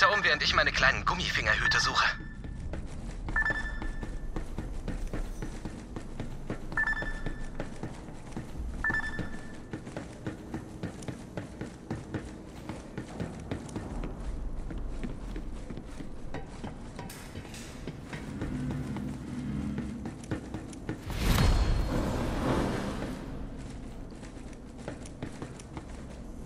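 Footsteps tap steadily on a hard metal floor.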